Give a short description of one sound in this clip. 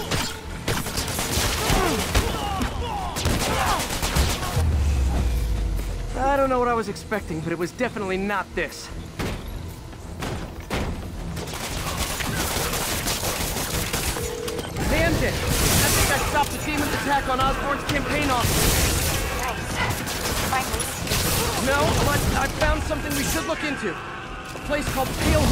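Punches and kicks thud in a fast brawl.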